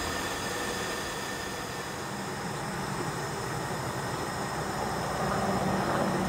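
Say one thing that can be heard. A gas camp stove burner hisses steadily.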